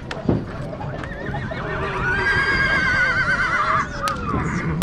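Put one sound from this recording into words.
A horse whinnies loudly and long.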